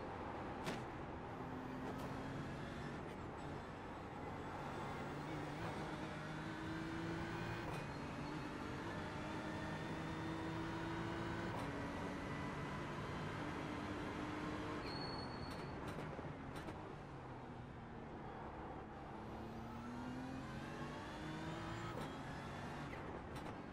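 A racing car engine roars and revs up through the gears, dropping in pitch at each shift.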